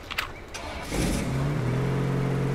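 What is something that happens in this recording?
A truck engine starts and idles.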